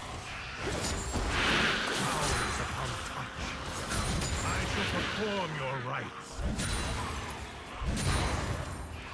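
Magic spells and sword strikes clash and burst in a battle.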